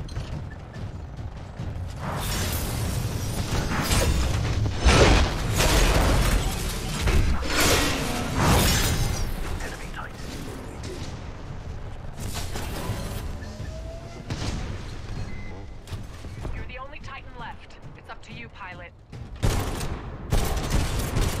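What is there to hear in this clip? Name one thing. Heavy gunfire blasts in rapid bursts.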